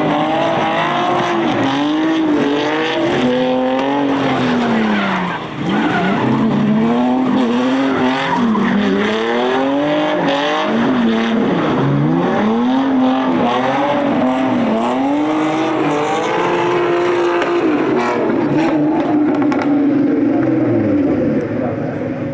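Car engines rev hard up and down as cars drift close by.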